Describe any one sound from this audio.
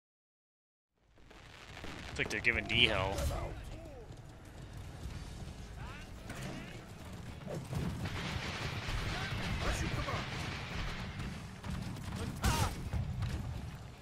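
Horse hooves gallop on stone.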